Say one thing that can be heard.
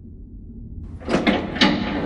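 Heavy double doors are pushed open with a rough scraping rush.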